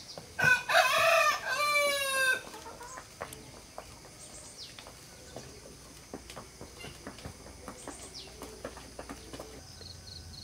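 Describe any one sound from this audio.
A horse's hooves clop steadily on a hard dirt path.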